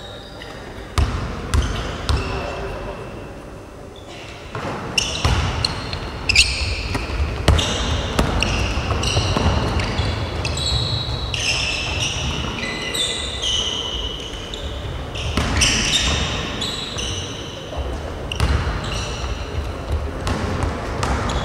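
A basketball bounces on a wooden floor with a hollow thud.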